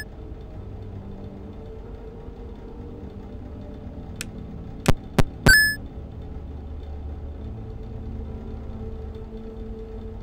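A desk fan whirs steadily.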